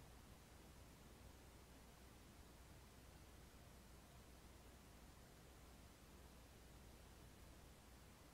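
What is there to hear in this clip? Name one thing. A man breathes slowly and deeply in sleep.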